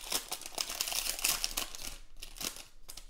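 Foil packaging crinkles and rustles.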